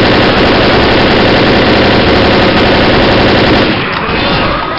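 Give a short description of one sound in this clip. A rifle fires loud, rapid bursts of shots.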